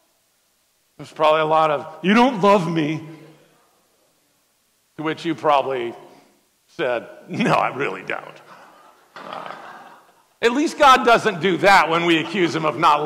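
A man speaks with animation through a microphone in a large echoing hall.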